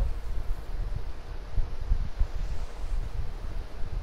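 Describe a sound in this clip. Footsteps scrape and slide down a rocky slope.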